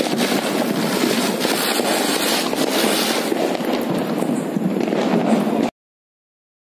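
Many firecrackers crackle and pop rapidly.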